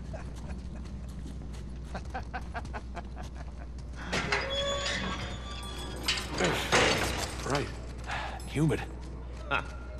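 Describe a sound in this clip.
Footsteps scuff on stone floor and stairs.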